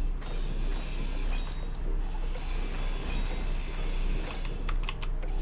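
A grinder whirs and grinds against metal.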